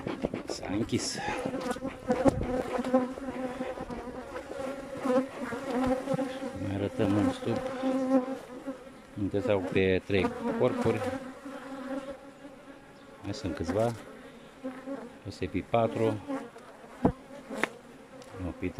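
Bees buzz steadily around the hives.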